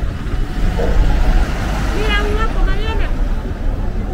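A minibus engine rumbles as it passes close by.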